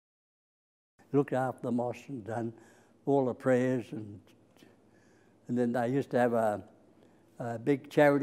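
An elderly man speaks calmly and close to a microphone, in short phrases with pauses.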